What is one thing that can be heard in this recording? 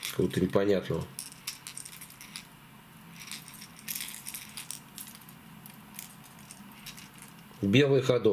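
Plastic fishing lures click and rattle softly as they are handled.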